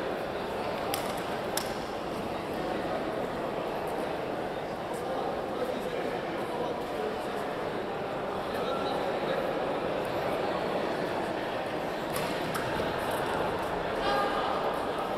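Rackets sharply strike a shuttlecock in a large echoing hall.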